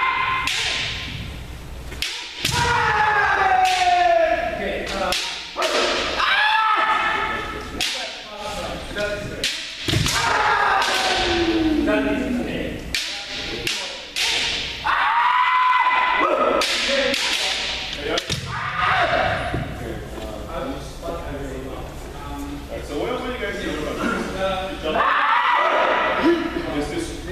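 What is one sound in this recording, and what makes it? Bare feet stamp on a wooden floor.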